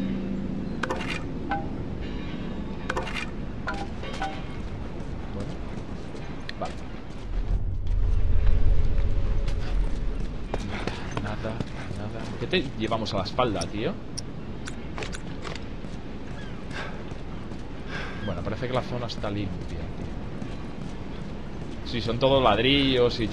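Footsteps scuff on hard ground.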